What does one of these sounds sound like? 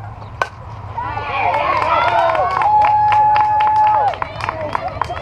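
Young women cheer loudly after the hit.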